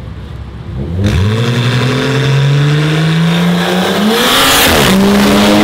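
Two car engines roar loudly as the cars launch and accelerate hard, rising in pitch.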